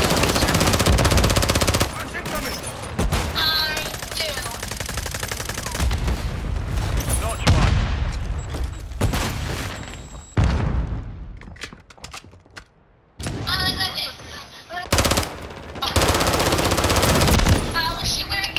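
Rapid gunfire rattles loudly at close range.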